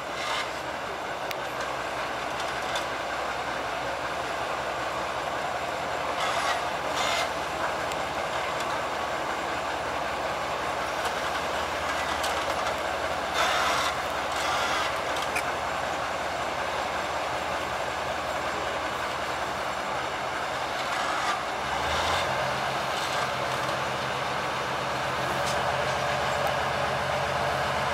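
Steel wheels squeal and clank on the rails.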